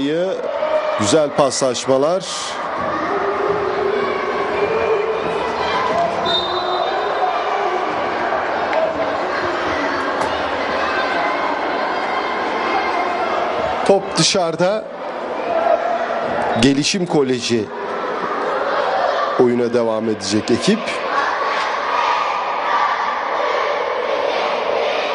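Voices murmur in a large echoing hall.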